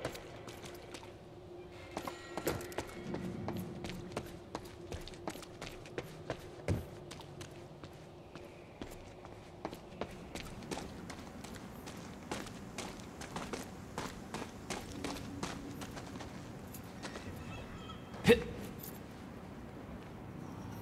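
Footsteps run quickly over a hard floor.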